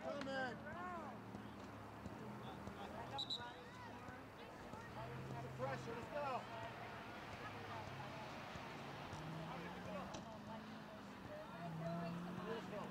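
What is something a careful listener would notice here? Young players shout and call to each other outdoors in the distance.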